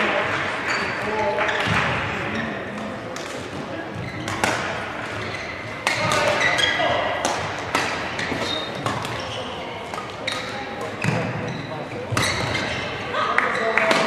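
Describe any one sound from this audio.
Shuttlecock hits from rackets crack sharply back and forth in a large echoing hall.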